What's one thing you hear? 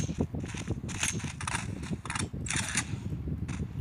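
A rifle's magazine is pulled out and clicked back in.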